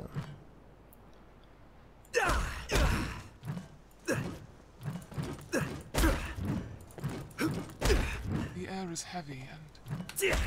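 Footsteps tap on stone floor.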